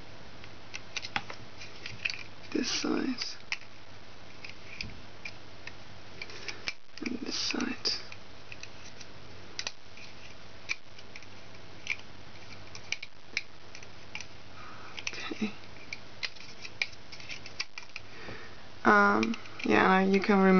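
Small plastic clicks and ticks come as a hook works rubber bands on a plastic loom.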